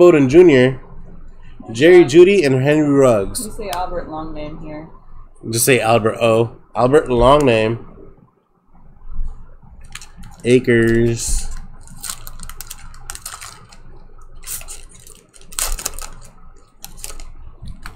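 A plastic wrapper crinkles under fingers.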